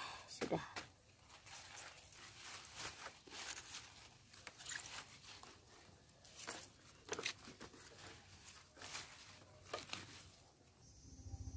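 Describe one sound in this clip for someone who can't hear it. Leafy greens rustle as hands arrange them in a woven basket.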